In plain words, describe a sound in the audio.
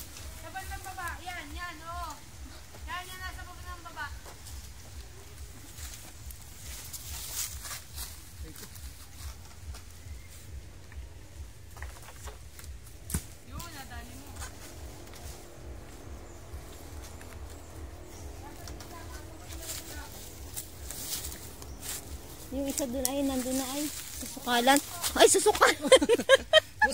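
A child shouts from a distance outdoors.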